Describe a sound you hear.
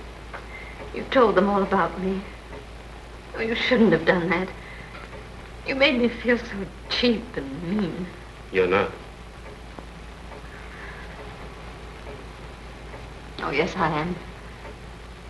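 A man speaks softly and intimately, close by.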